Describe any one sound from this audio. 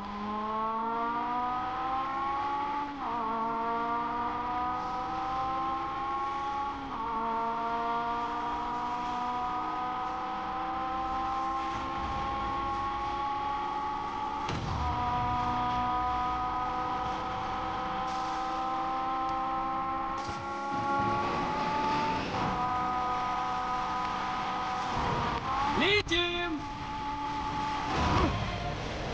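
A car engine roars at high revs, rising in pitch through each gear and dropping at each gear change.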